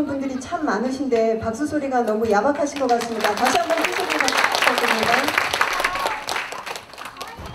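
A woman speaks through a loudspeaker in a large echoing hall.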